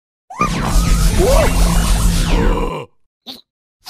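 A magical whooshing burst rings out loudly.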